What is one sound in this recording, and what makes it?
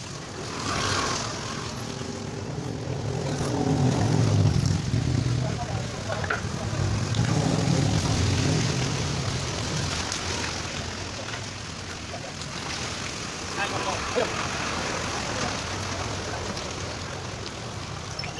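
Hands scrape wet mud off pavement.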